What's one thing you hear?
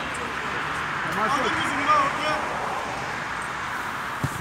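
A man cheers loudly nearby.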